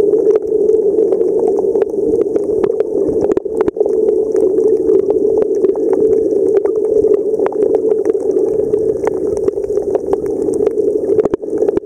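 A steady muffled underwater rumble fills the sound, with small crackles and clicks.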